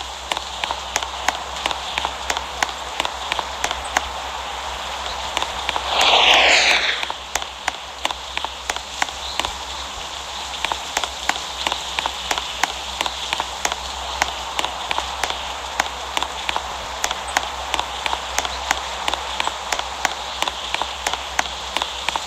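Quick game footsteps patter as a character runs.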